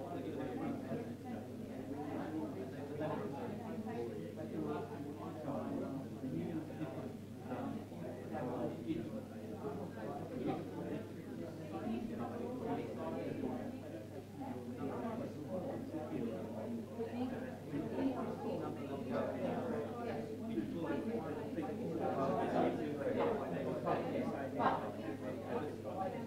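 Many men and women chatter at once nearby, a murmur of overlapping voices.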